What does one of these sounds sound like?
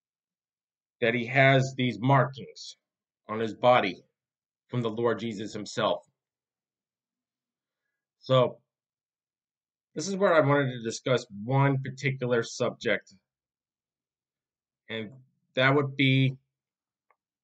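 A man speaks calmly and close up, in short bursts with pauses.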